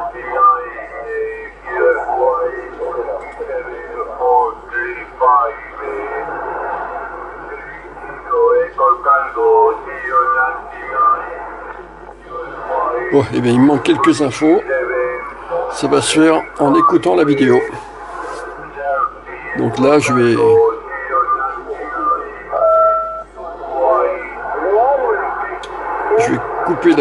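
Voices come through a radio loudspeaker.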